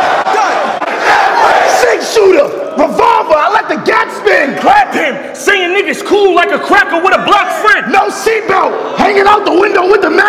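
A young man raps loudly and with energy into a microphone.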